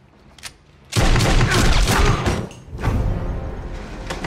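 Gunshots ring out loudly.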